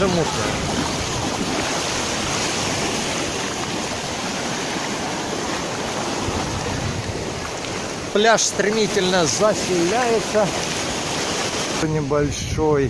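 Small waves splash and wash over the shore.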